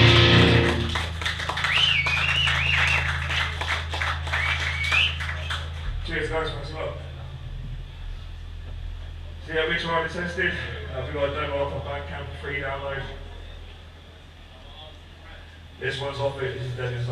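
A rock band plays loud distorted guitars, bass and drums.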